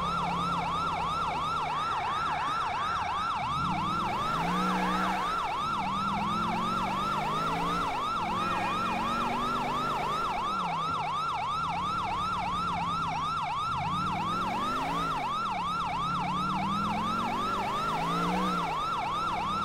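A car engine revs up and down as it drives and shifts gears.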